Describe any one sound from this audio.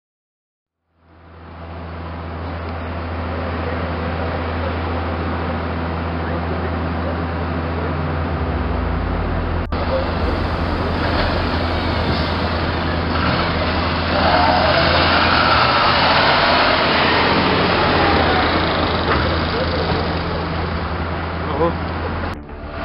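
Heavy truck engines rumble close by.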